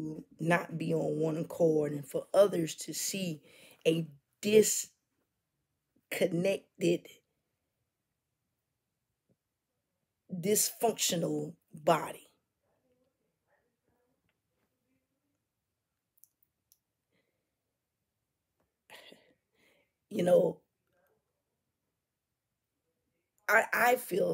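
A woman speaks with feeling into a close microphone, pausing often.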